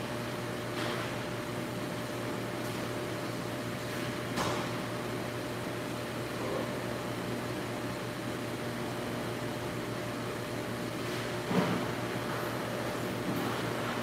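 A pressure washer hisses steadily as water sprays onto a truck in an echoing hall.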